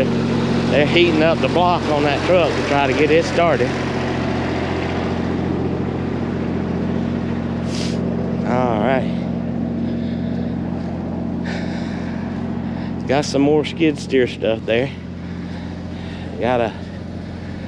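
A diesel engine idles with a steady low hum.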